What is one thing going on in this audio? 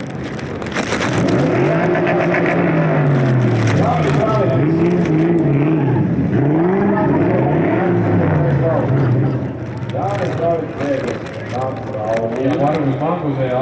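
A second car engine revs loudly alongside.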